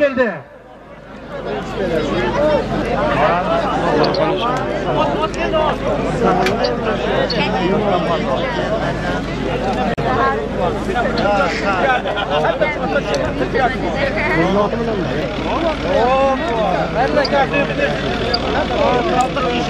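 A large crowd of men shouts and calls outdoors.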